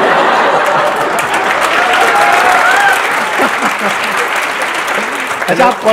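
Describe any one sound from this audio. A large audience claps and cheers.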